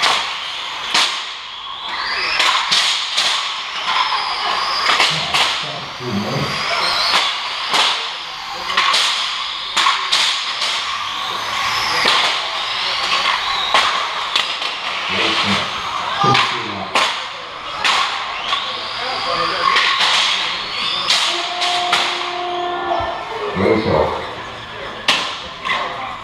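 Model car tyres screech and squeal while drifting on a smooth floor.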